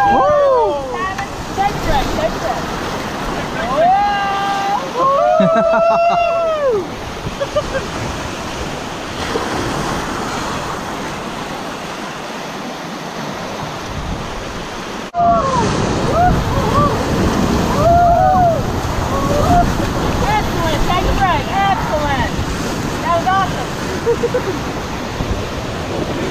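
River rapids rush and roar loudly close by.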